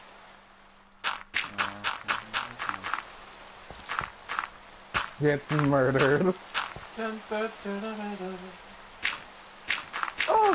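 Blocks of dirt thud softly as they are placed.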